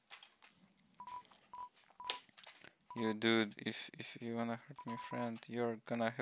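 Short electronic blips tick rapidly in a steady run.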